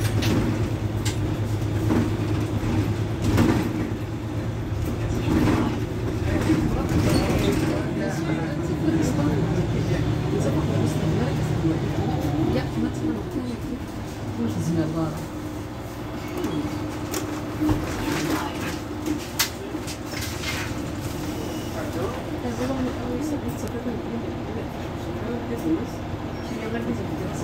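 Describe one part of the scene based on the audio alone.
A bus engine idles close by with a low, steady rumble.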